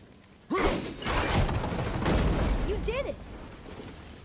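A heavy wooden gate grinds and rumbles open.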